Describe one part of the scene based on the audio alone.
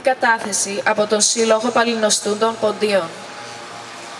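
A woman sings loudly into a microphone.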